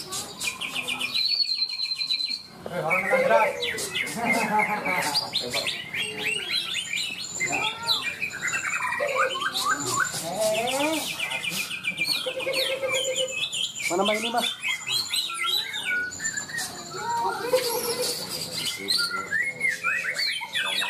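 Many caged birds chirp, trill and whistle busily, close by.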